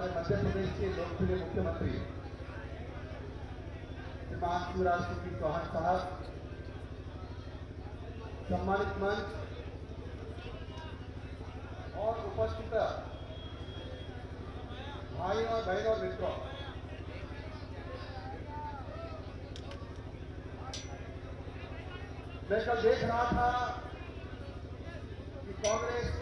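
A man speaks forcefully through a loudspeaker in short bursts with pauses.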